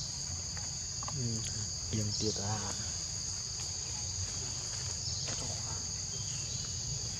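A baby monkey squeaks softly close by.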